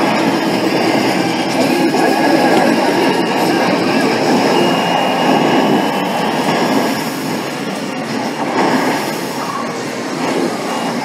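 Explosions and gunfire from an arcade game boom loudly through loudspeakers.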